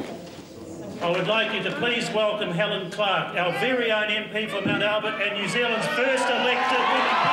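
A man speaks into microphones to a crowd.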